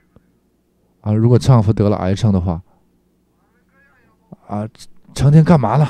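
An elderly man speaks calmly through a clip-on microphone.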